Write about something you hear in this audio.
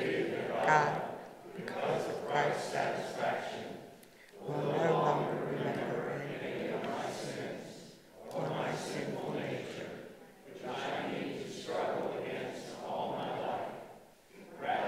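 An elderly woman reads aloud calmly through a microphone.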